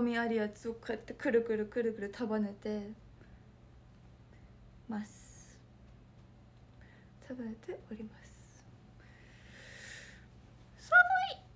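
A young woman talks animatedly close to a microphone.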